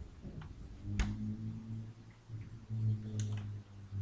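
A metal casing clicks and knocks as it is handled.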